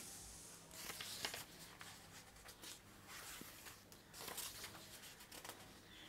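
Paper rustles and crackles close by as pages are handled.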